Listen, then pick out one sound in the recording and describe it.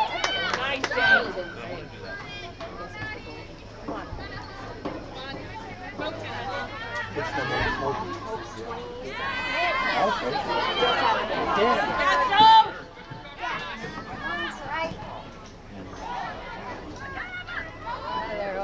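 A crowd of spectators cheers and calls out from a distance.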